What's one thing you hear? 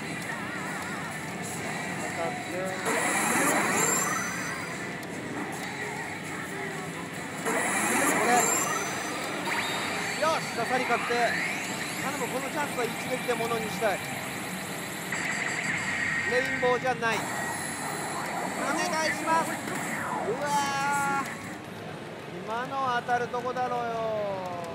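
A pachinko machine plays loud electronic music and sound effects.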